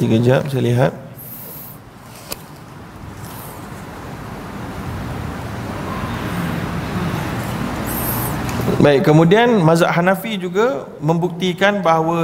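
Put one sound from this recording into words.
A man reads aloud calmly into a microphone.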